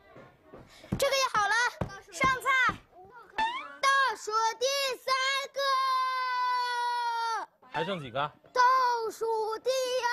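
A young boy talks excitedly, close by.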